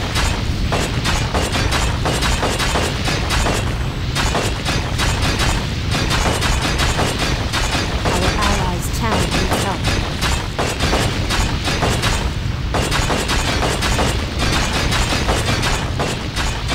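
Magic spells crackle and blast repeatedly in a fight.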